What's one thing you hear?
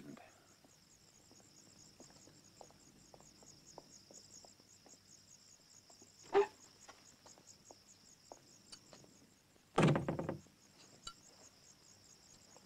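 Footsteps tread slowly.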